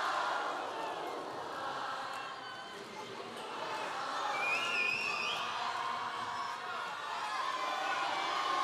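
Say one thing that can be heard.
A man speaks with animation through loudspeakers in a large echoing hall.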